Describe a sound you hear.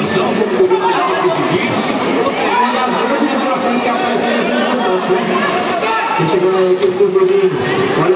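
A ball thuds against shoes and the hard court.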